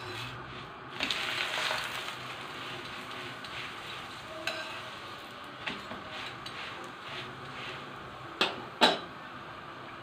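A metal spatula scrapes and taps on a hot pan.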